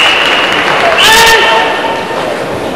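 A young man shouts sharply and loudly.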